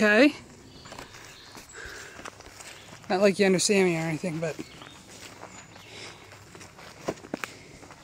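Footsteps crunch on a dirt forest trail.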